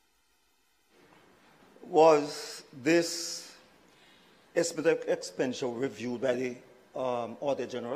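An elderly man speaks firmly into a microphone.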